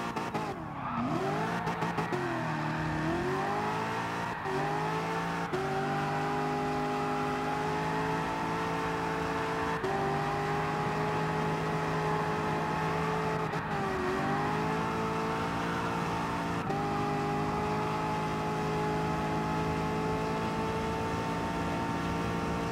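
A car engine revs hard and roars, its pitch climbing and dropping with each gear change.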